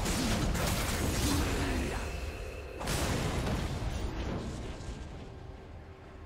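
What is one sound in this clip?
Spell effects crackle and whoosh in a fast video game fight.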